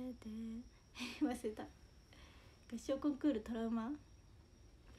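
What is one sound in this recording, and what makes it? A young woman laughs briefly, close to the microphone.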